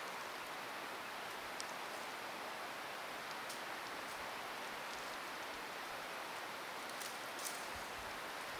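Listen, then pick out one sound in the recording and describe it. Dry leaves and twigs rustle softly.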